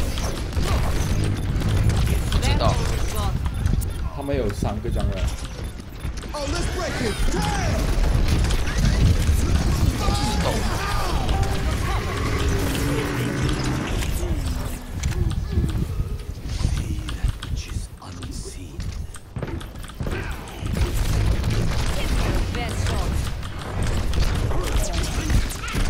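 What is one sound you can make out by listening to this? A heavy energy gun fires in rapid, booming bursts.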